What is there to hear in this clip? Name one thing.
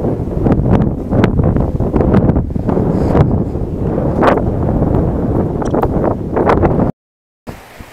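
Wind buffets the microphone loudly outdoors.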